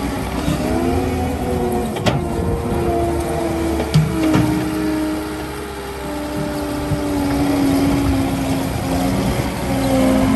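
A diesel compact track loader engine runs as the machine drives.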